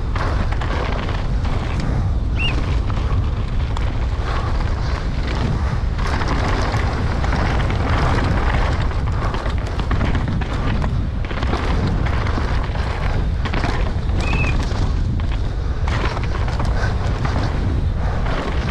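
Bike tyres rumble and crunch over dirt and stones.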